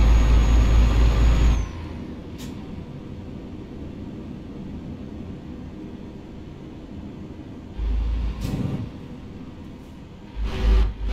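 A truck engine rumbles steadily as the truck drives slowly.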